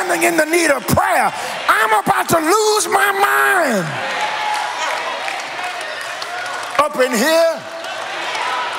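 A man preaches forcefully into a microphone, his voice ringing through a large echoing hall.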